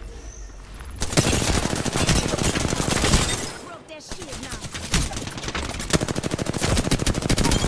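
Rapid automatic gunfire rattles in quick bursts.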